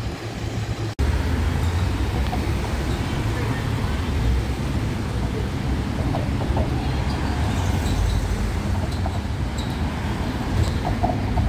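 Cars drive past outdoors with a steady low rumble.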